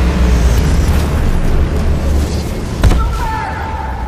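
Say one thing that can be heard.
A heavy gun fires with a deep, rumbling roar.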